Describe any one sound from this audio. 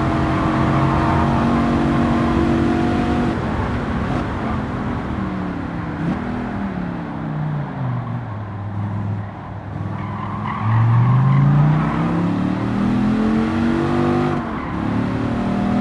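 A sports car engine roars at high revs, dropping in pitch as it slows for a corner and rising again as it speeds up.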